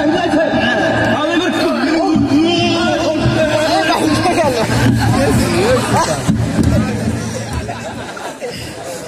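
Music with a deep beat plays loudly through loudspeakers, then fades.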